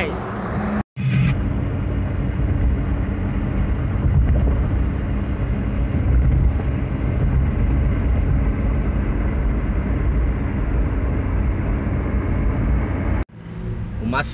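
A car engine hums and tyres roll on a highway.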